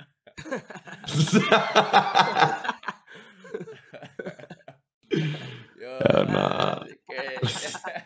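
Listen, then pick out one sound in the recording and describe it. Young men laugh loudly over microphones.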